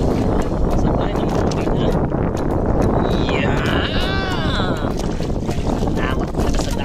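Waves slosh against a small boat's hull.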